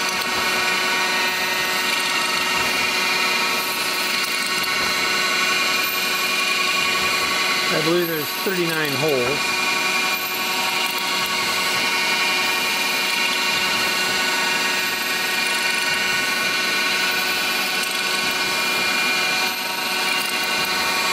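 A milling cutter whines steadily as it cuts through metal.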